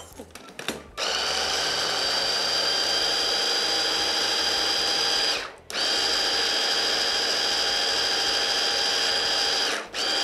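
A hand blender whirs loudly and steadily, briefly stopping once.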